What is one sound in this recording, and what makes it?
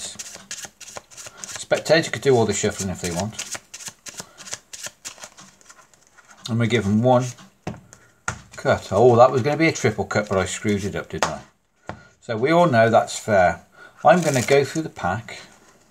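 Playing cards riffle and flutter as a deck is shuffled.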